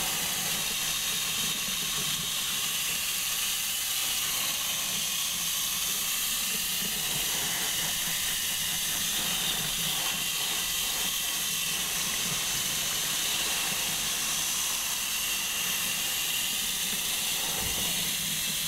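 Water from a shower head sprays steadily and splashes into a basin.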